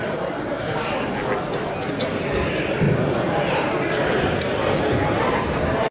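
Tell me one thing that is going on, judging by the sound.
A saxophone plays a melody.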